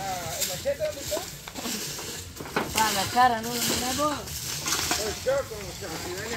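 A broom sweeps and scratches over dry leaves and dirt.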